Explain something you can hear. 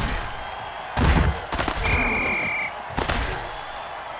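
Armoured players crash together in a heavy tackle.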